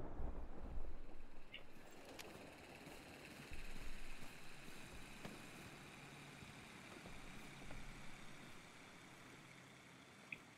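Footsteps thud and rustle through grass and leaves.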